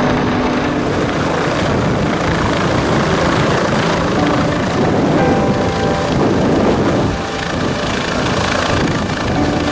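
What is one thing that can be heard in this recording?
A helicopter engine whines steadily.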